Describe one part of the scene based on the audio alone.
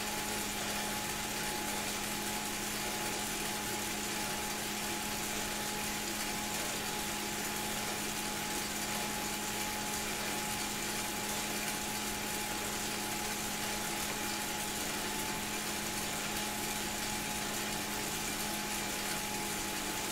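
A bike trainer whirs steadily.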